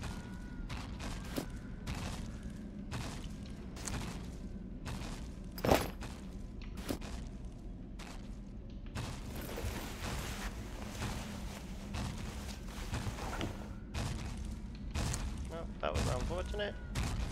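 Short clicks and rustling sound as gear is handled.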